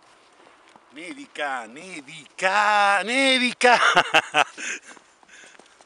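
A middle-aged man laughs loudly and shouts close by.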